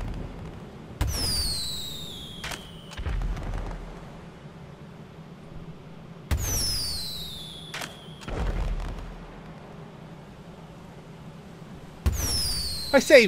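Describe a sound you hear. A firework rocket launches with a whoosh and a falling whistle.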